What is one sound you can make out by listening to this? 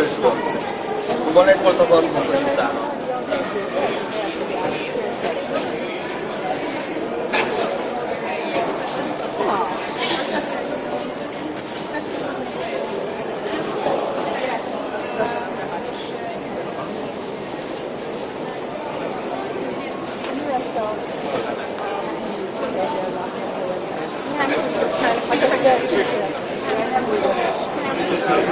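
A crowd of adults murmurs and chatters nearby in a large echoing hall.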